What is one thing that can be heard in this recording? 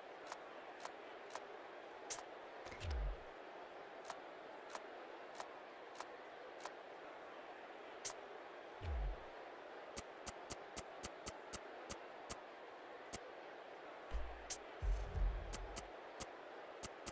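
Short menu clicks tick again and again.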